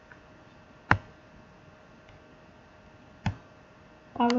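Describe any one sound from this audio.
A mouse button clicks sharply.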